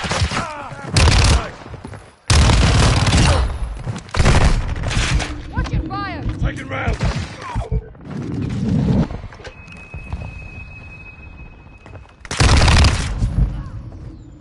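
Automatic gunfire rattles in loud bursts.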